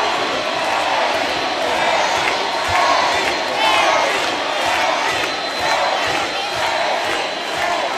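A large crowd sings along loudly in a big echoing arena.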